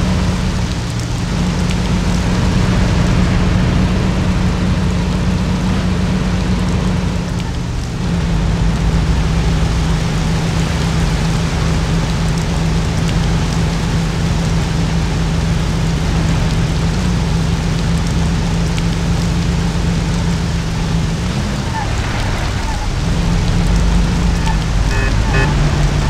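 An old car engine hums steadily as the car drives along.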